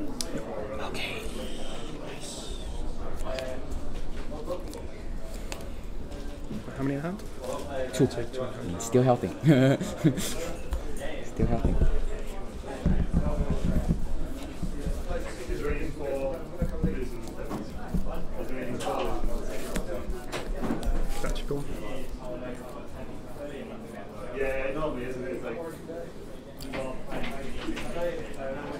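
Playing cards slide and tap on a soft mat.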